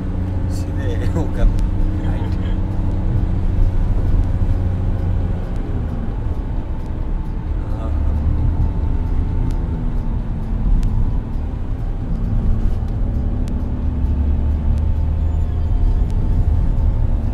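A car drives along a paved road, heard from inside the cabin.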